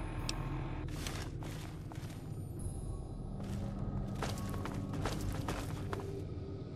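Footsteps thud on stairs and a debris-strewn floor.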